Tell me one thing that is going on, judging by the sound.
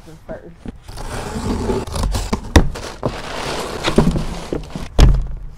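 Tape rips as a box is cut open.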